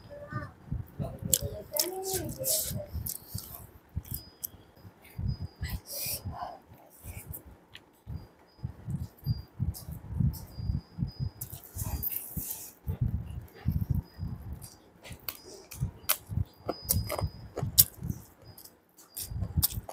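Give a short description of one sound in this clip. Fingers squish and mix rice and curry on a plate.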